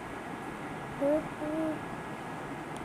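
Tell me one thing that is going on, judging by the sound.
A young child calls out briefly nearby.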